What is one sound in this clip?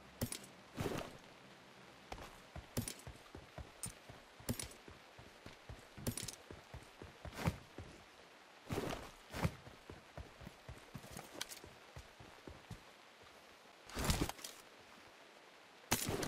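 Footsteps thud quickly over the ground.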